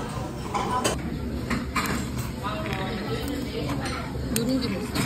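A metal spoon scrapes and clinks against a stone pot.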